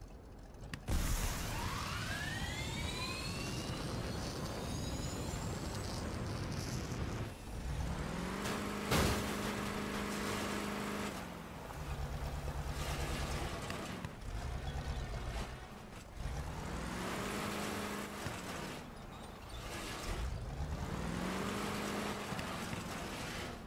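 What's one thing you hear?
A vehicle engine roars and revs up and down repeatedly.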